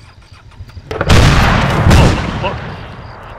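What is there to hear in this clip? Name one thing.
A loud blast booms and rumbles.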